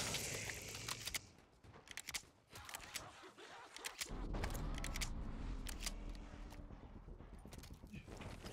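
Gunshots crack repeatedly nearby.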